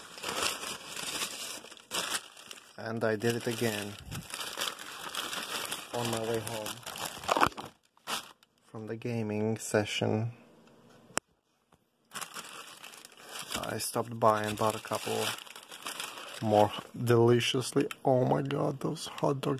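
A paper bag crinkles and rustles close by.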